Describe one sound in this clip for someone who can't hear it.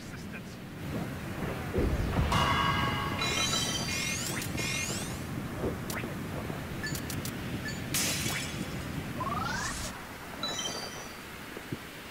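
Electronic game sound effects chime and whoosh.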